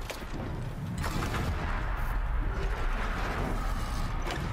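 Weapons fire and blasts crackle in a video game.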